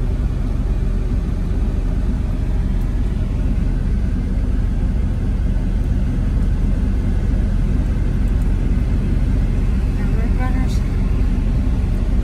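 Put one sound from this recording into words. A vehicle's engine and tyres rumble steadily on the road.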